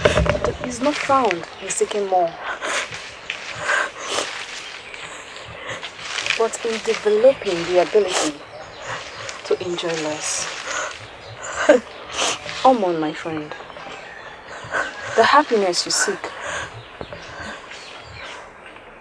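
A second young woman answers in a tense voice up close.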